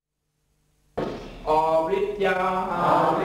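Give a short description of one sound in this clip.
A man speaks into a microphone, singing or chanting in a steady voice.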